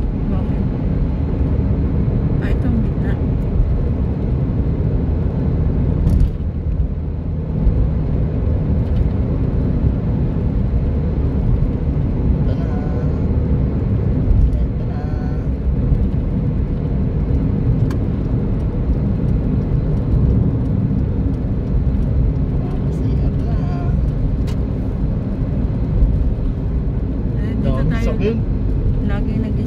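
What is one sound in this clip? A car's engine hums steadily from inside the car as it drives along.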